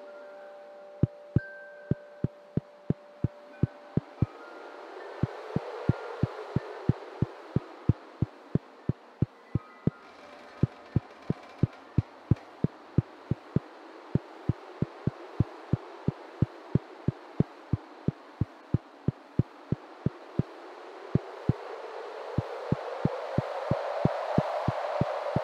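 Footsteps tap quickly and evenly.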